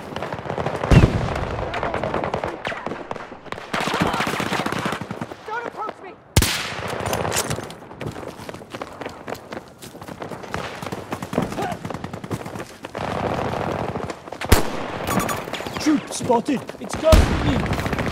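Gunshots crack sharply now and then, close by.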